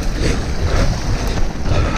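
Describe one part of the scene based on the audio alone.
Tyres splash through shallow water over stones.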